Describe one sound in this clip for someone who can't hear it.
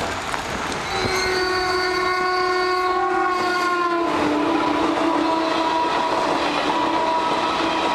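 A train horn blares long and loud, dropping in pitch as the train passes.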